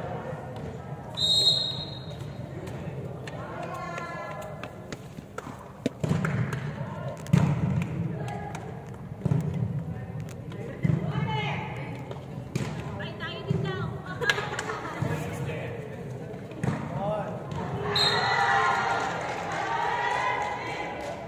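Young women chatter and call out in a large echoing hall.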